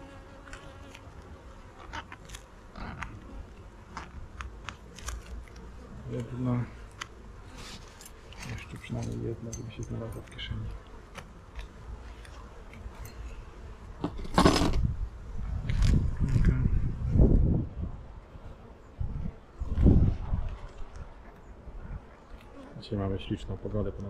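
Bees buzz steadily around an open hive.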